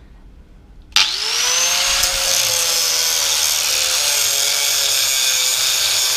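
An angle grinder whirs up and grinds loudly through metal.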